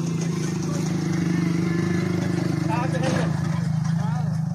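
A motor rickshaw engine chugs steadily close by.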